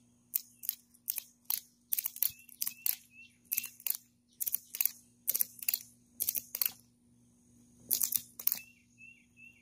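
A lawn mower's pull cord is yanked again and again with quick rasping whirs.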